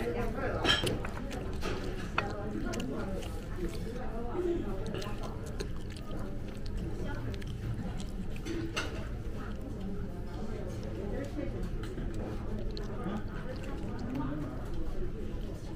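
Chopsticks click and scrape against a plate.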